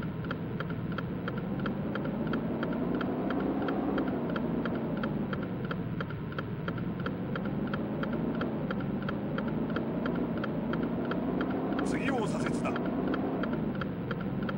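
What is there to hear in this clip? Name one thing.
A turn signal ticks steadily and quickly.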